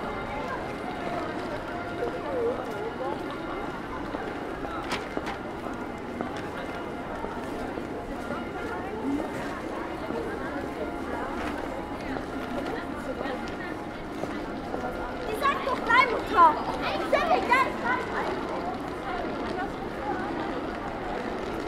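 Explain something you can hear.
A crowd of people murmurs and chatters throughout in a busy outdoor street.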